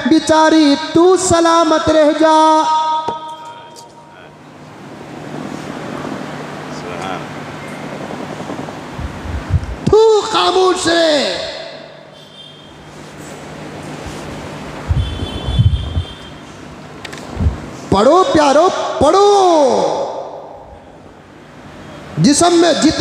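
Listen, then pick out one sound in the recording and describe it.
A man speaks with animation through a microphone, in bursts that ring with echo.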